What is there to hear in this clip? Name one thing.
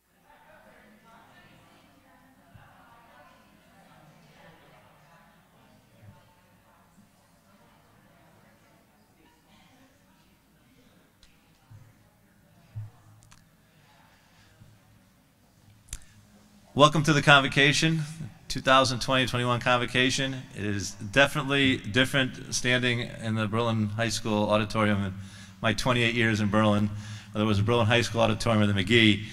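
A middle-aged man speaks calmly through a microphone and loudspeakers.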